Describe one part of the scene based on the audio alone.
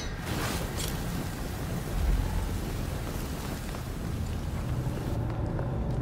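Flames roar loudly and steadily.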